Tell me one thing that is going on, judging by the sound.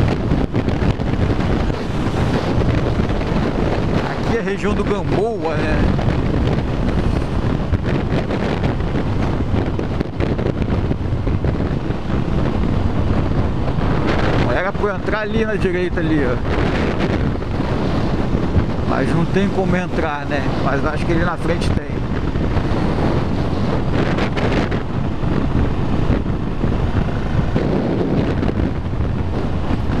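Wind roars loudly against a moving motorcycle.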